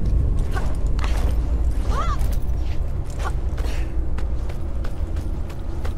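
Hands and feet clank on a metal ladder rung by rung.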